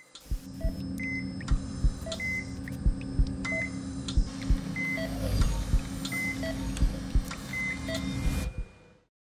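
A medical monitor beeps at a steady, regular pace.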